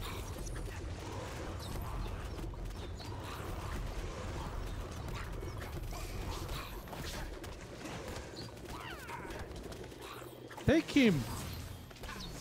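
Magic blasts whoosh and crackle during a fast fight.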